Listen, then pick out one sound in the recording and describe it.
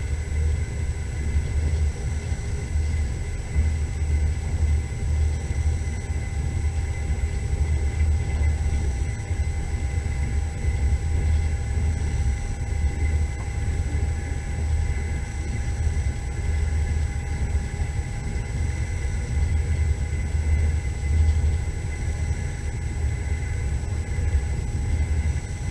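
Tyres roll over a snowy road with a low, constant rumble.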